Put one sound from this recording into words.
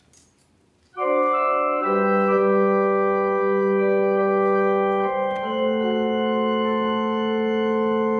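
An organ plays sustained chords.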